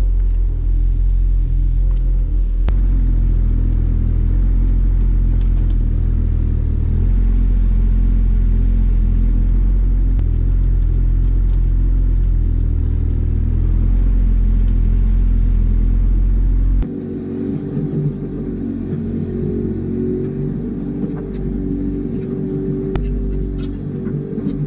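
A small excavator's diesel engine rumbles steadily close by.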